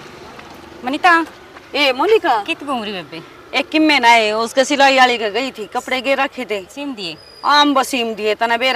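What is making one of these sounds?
A woman speaks with feeling outdoors.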